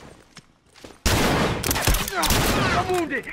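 Gunshots bang sharply, close by.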